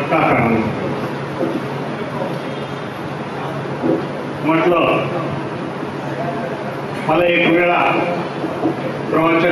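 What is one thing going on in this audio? A man speaks with animation into a microphone over loudspeakers in an echoing hall.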